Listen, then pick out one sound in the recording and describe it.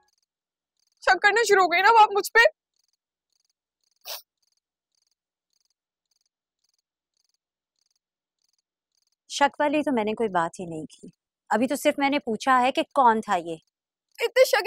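A young woman speaks calmly and earnestly, close by.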